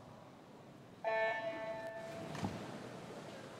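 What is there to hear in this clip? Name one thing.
An electronic start signal beeps sharply.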